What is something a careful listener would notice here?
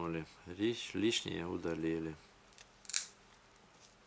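Pliers click and snap against a thin metal wire.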